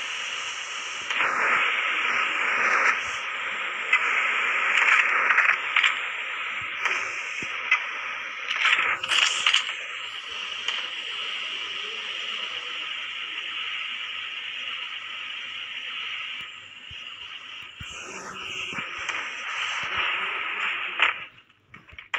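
Rain falls steadily with a rushing hiss.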